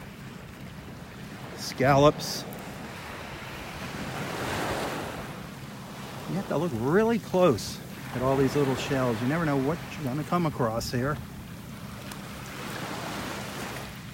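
Small waves wash gently up onto the shore outdoors.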